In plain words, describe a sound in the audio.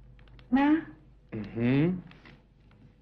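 A young woman speaks brightly, close by.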